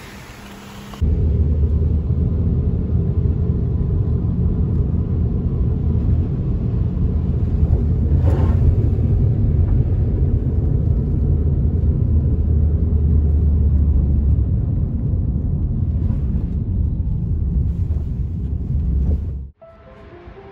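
A car hums and rumbles steadily from the inside as it drives.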